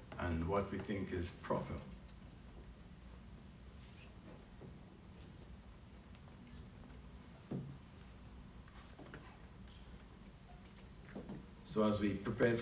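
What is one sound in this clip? An elderly man speaks slowly and calmly into a microphone, with long pauses.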